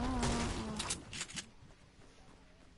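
A metal door swings open.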